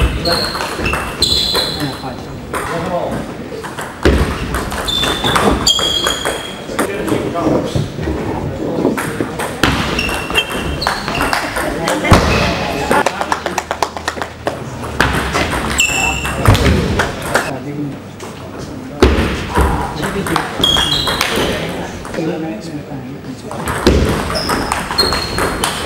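A table tennis ball clicks rapidly back and forth off paddles and the table in an echoing hall.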